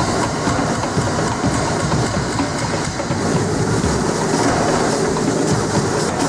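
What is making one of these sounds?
A machine rumbles and whirs steadily close by.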